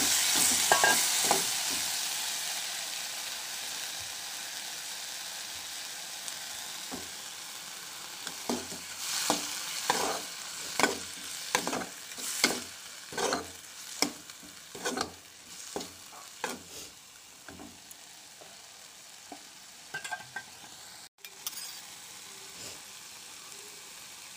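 Food sizzles and hisses in a hot pan.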